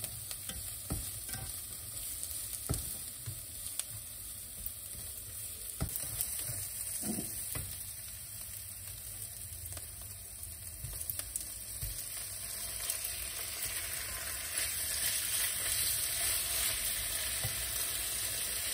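Onions sizzle in a hot frying pan.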